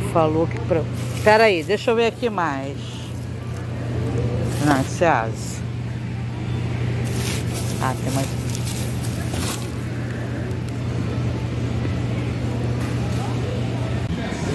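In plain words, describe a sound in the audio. A plastic bag crinkles and rustles as it is handled.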